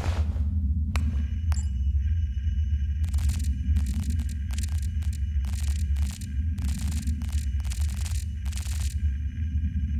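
A handheld device clicks and beeps in quick bursts.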